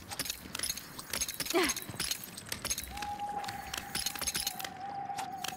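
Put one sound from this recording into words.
Light scraping steps patter as a game character climbs a rock face.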